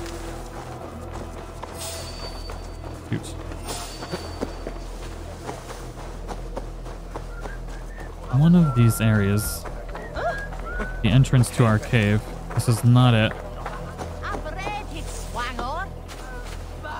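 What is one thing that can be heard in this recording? Footsteps rustle softly through grass.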